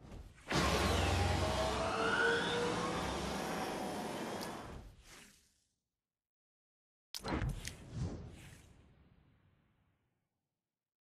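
A magical shimmering whoosh sounds as a figure materialises.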